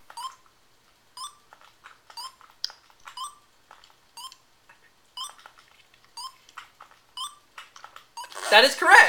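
Short electronic beeps sound at a steady pace, about once a second.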